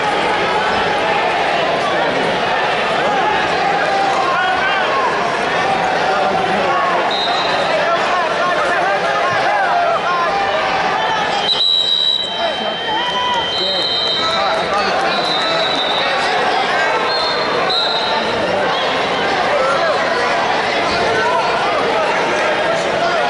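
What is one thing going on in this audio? A large crowd chatters and shouts in a big echoing hall.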